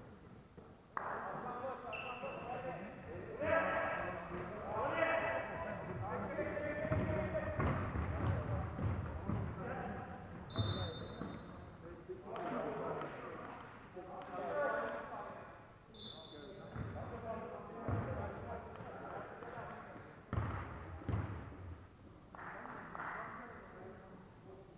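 Young men shout and call out across an echoing hall.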